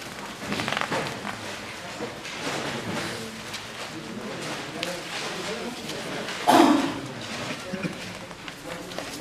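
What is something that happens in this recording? Sheets of paper rustle as pages are turned.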